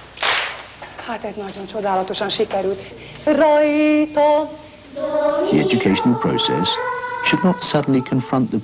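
A woman sings a melody up close.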